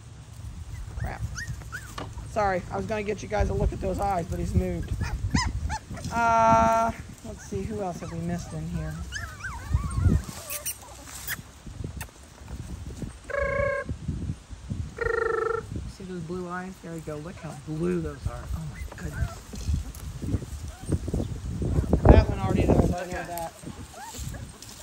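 Puppies scamper and rustle through dry leaves outdoors.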